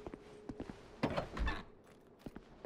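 A heavy door thuds loudly.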